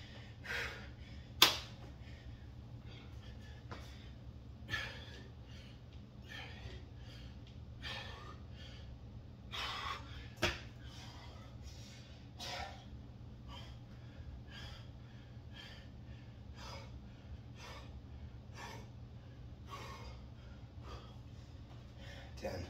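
A man breathes hard and puffs in rhythm.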